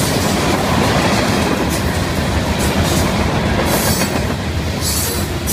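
A long freight train rumbles and rattles past close by.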